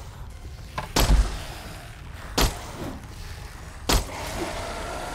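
A gun fires several loud, sharp shots.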